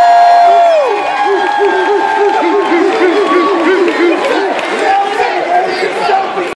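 A crowd cheers and whoops.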